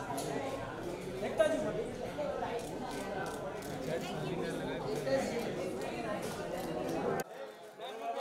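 A crowd of people chatters loudly around.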